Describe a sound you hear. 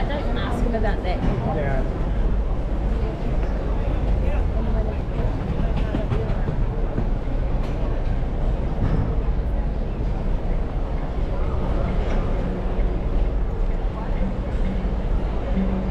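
A crowd of people chatters in a busy outdoor walkway.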